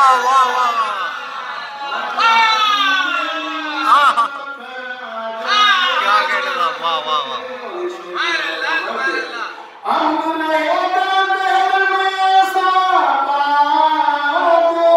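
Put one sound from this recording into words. A man sings a melodic chant loudly through a microphone in an echoing room.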